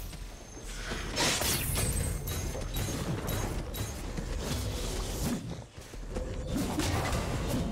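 Video game spell effects whoosh and crackle in a fight.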